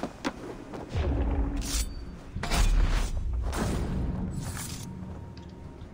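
Heavy blows and thuds sound in a game fight.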